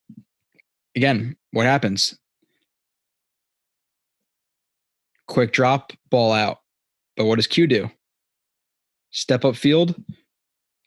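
A young man talks calmly and closely into a microphone.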